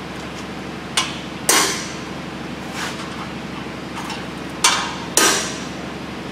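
A hammer strikes metal with sharp, ringing blows.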